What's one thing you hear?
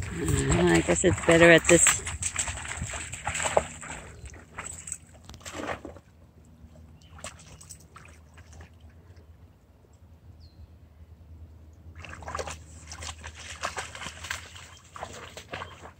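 Dogs splash and wade through shallow water.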